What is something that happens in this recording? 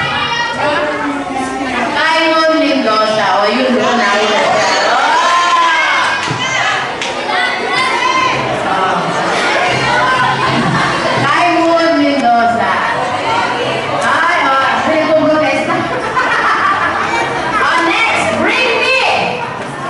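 A woman speaks with animation through a microphone over loudspeakers in an echoing hall.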